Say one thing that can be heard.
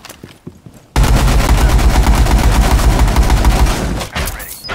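A rifle fires in a rapid, loud burst.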